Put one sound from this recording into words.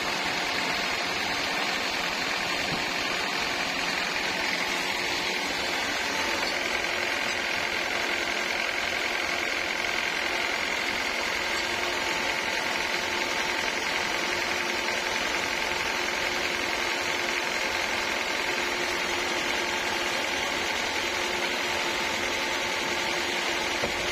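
A sawmill machine whines and roars steadily as a blade cuts through a thick plank of wood.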